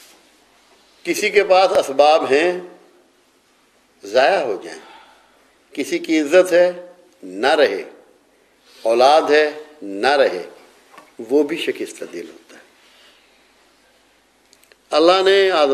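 An elderly man speaks calmly and closely into a microphone, in short phrases with pauses.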